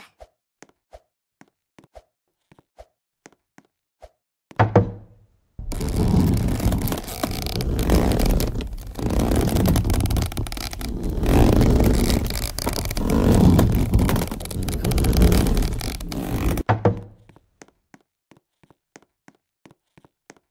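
Footsteps patter quickly on a hard stone floor.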